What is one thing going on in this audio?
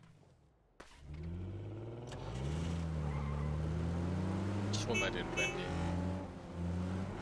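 An engine starts up and revs as a vehicle pulls away.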